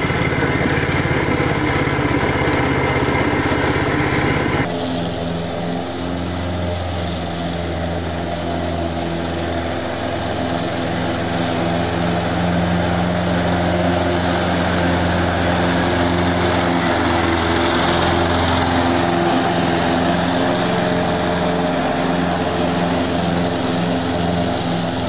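Mower blades whirr through grass.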